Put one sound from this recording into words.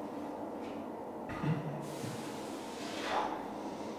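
A barbell clanks onto its rack.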